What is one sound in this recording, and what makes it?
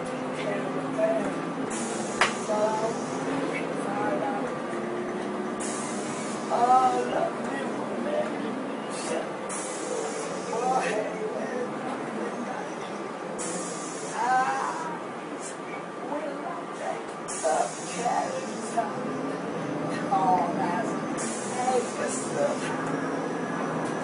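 A woman sings loudly and with animation, close by.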